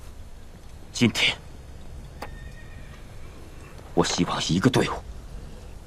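A man speaks pleadingly, close by.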